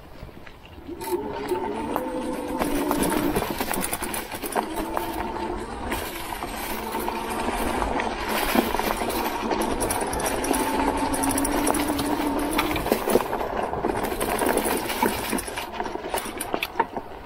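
An electric bike motor whines steadily, rising and falling in pitch.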